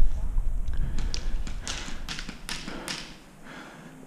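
A paintball marker fires a quick series of sharp pops close by.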